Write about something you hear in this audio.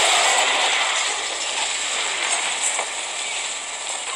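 A giant monster roars loudly.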